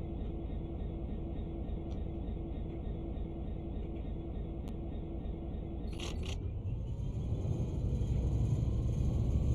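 A train engine rumbles low and steady.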